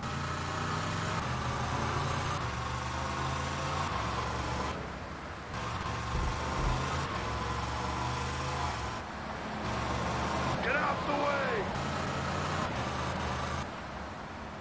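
A car engine hums steadily as the car drives.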